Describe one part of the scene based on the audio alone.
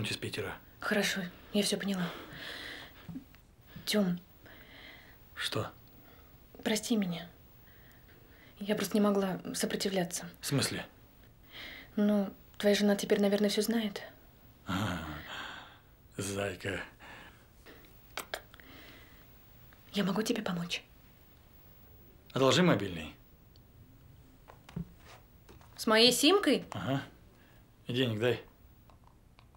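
A young woman speaks quietly and softly, close by.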